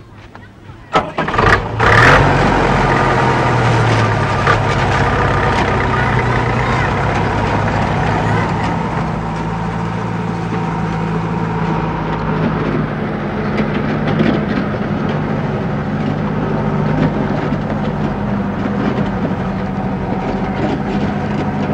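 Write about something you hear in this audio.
Truck tyres crunch over a dirt road.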